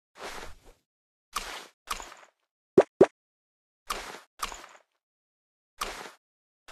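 Short whooshing game sound effects play again and again.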